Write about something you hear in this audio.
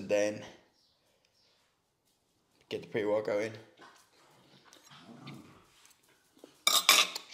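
A fork scrapes on a plate.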